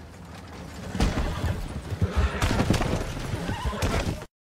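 Wagon wheels rattle and creak past.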